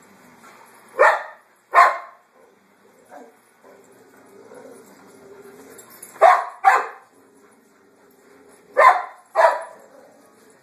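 A large dog barks sharply in pairs.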